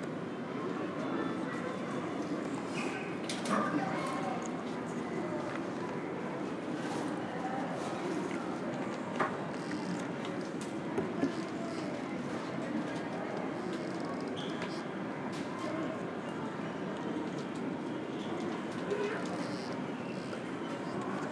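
Distant voices murmur and echo through a large, quiet hall.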